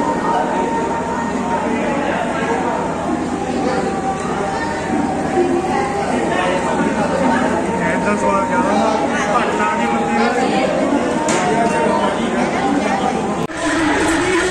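A crowd of men chatter nearby.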